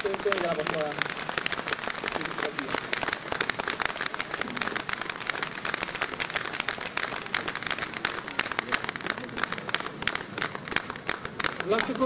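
An elderly man claps his hands.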